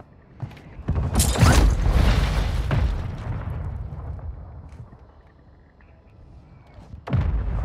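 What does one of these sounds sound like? Footsteps thud quickly on wooden stairs.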